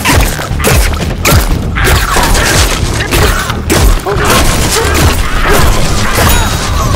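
Small explosions burst and splatter nearby.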